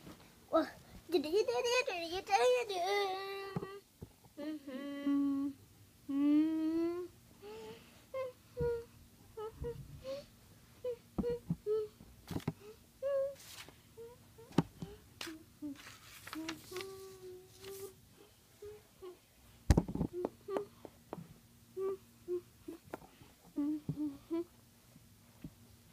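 A small plastic toy taps softly on a carpet.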